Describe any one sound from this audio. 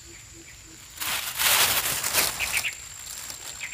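Leafy plants rustle loudly as peppers are picked by hand.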